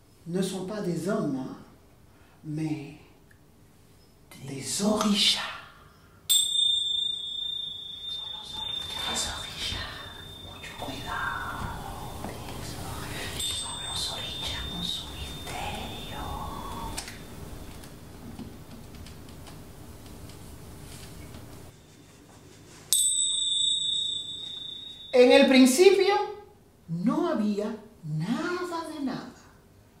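A middle-aged woman speaks expressively, close by.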